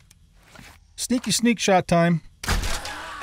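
A man exclaims loudly into a close microphone.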